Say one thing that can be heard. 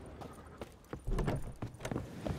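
A wooden door creaks open with a knock.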